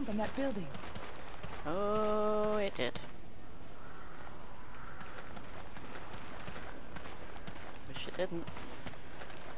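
A young woman talks into a close microphone, stretching out a word.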